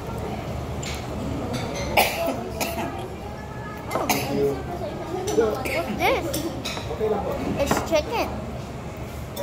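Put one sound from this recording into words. A young boy talks close by.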